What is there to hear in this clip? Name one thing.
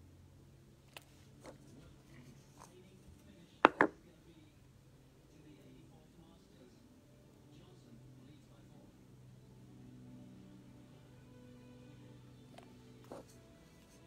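A small glass bottle clicks and knocks.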